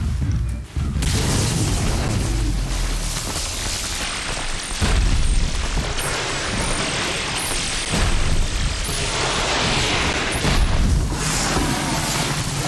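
Electricity crackles and sparks loudly.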